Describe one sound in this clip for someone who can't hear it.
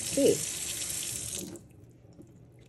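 Water runs from a tap into a metal sink.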